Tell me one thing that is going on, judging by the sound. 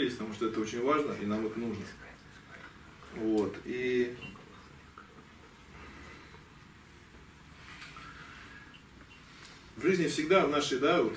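A man speaks into a microphone in a room with a slight echo, pausing between phrases.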